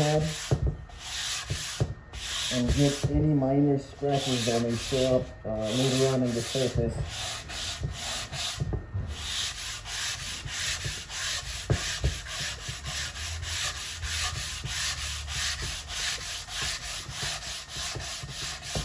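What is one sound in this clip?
A sanding block rubs back and forth over wood in quick, rhythmic strokes.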